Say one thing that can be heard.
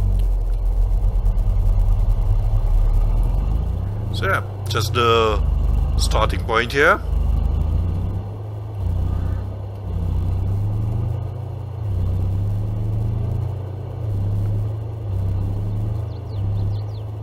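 A pickup truck engine rumbles low and steady as it drives over grass, rising and falling in pitch.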